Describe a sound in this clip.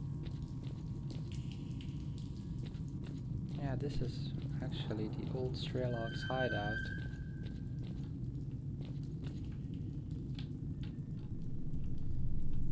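Footsteps scuff slowly across a hard concrete floor.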